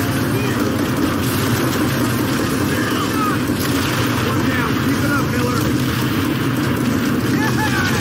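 Tank engines rumble steadily.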